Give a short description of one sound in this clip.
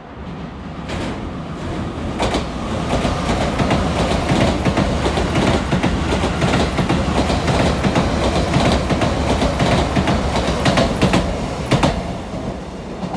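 An express train roars past at speed, wheels clattering on the rails.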